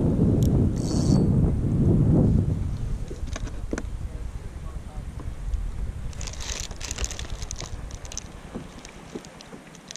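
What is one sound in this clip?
Water laps gently against a kayak hull.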